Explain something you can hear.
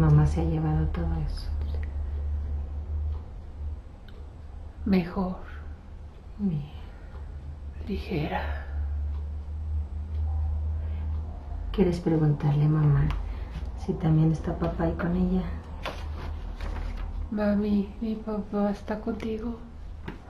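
A middle-aged woman speaks softly and calmly, close by.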